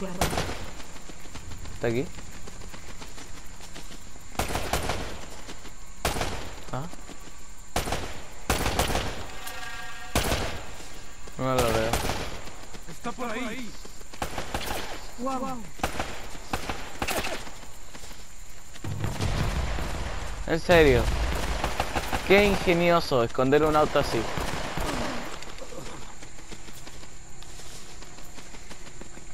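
Footsteps run quickly over grass and stones.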